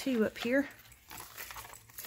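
Small metal charms jingle and clink.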